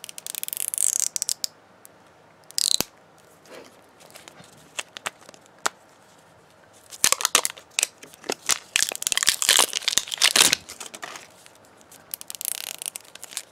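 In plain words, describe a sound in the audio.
Plastic wrapping crinkles and rustles as fingers peel it from a plastic ball.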